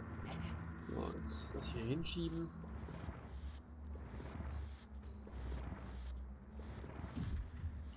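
A heavy stone block scrapes slowly across a stone floor.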